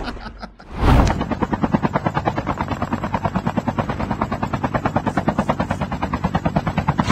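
A helicopter's rotor chops steadily.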